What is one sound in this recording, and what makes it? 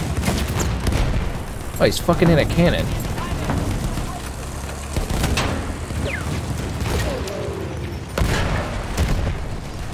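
Explosions and gunfire boom in the distance.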